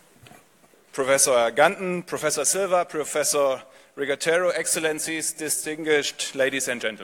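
A man speaks calmly into a microphone over a loudspeaker in a large hall.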